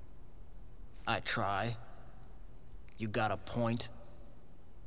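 A man speaks tersely in a low voice.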